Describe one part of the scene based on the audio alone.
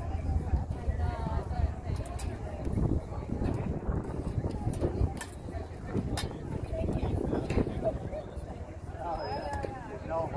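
Girls shout and call out on a sports field at a distance.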